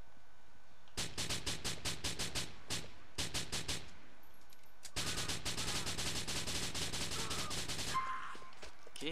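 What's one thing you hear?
A submachine gun fires rapid bursts.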